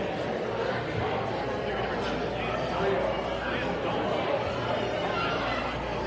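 A man speaks with animation in an echoing hall.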